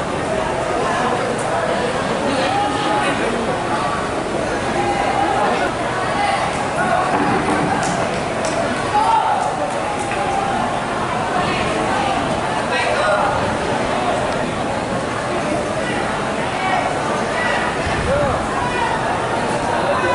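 Many people talk and call out over one another outdoors.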